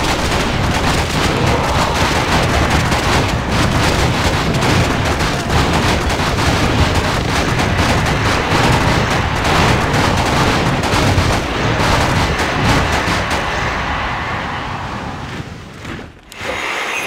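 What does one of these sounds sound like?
Spells burst and crackle amid the fighting.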